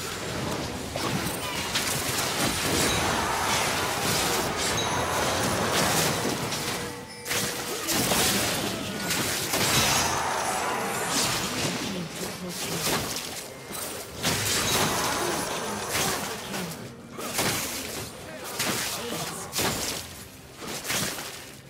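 Game spell effects and weapon hits crackle and clash in a busy battle.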